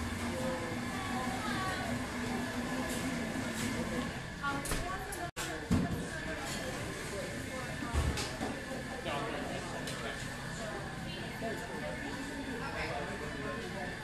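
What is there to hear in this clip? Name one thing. A crowd of people chatters in a busy, echoing room.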